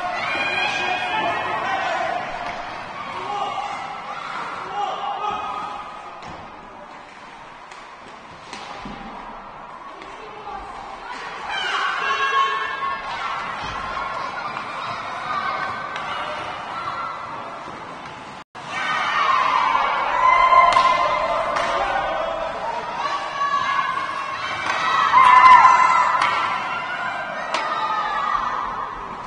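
Young players shout and call out in a large echoing rink.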